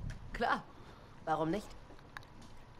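A young woman speaks briefly and calmly nearby.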